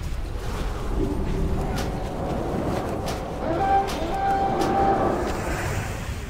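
Magic spell effects hum and chime.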